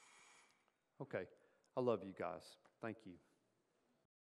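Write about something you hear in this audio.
A middle-aged man speaks calmly, heard through a microphone.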